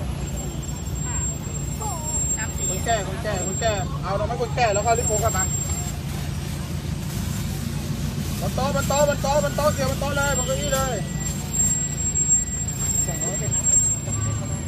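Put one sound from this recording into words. A vehicle engine idles with a steady low hum.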